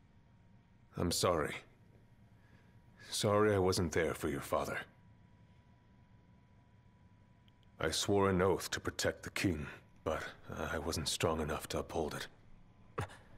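A man speaks slowly and quietly in a low, remorseful voice.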